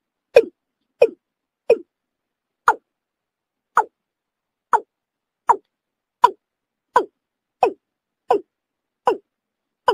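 A bird gives short, sharp calls over and over at an even pace.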